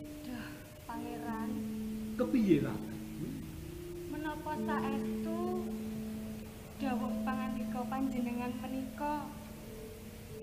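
A young woman sings through a microphone.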